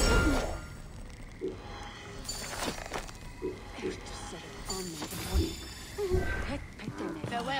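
Short menu clicks and chimes sound in quick succession.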